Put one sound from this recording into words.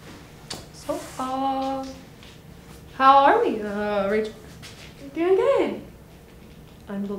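Young women talk to each other with animation, close by.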